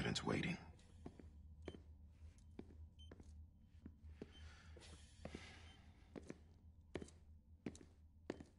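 Footsteps tap slowly across a hard floor.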